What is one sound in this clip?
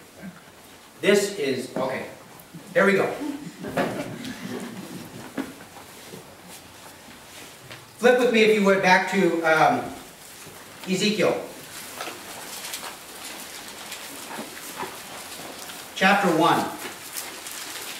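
A middle-aged man speaks calmly in bursts, heard in a room with some echo.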